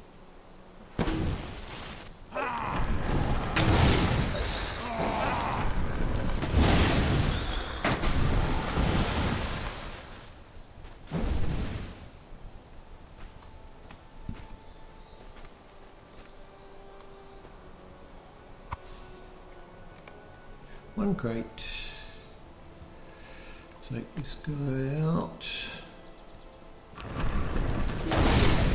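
A magic spell crackles and whooshes in loud bursts.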